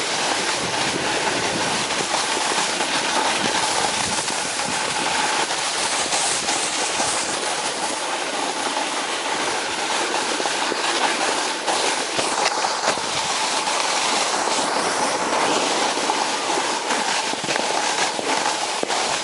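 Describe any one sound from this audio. Wind rushes against the microphone outdoors.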